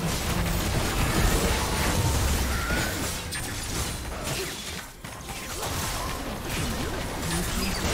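Spell effects and attacks crackle and boom in a busy game battle.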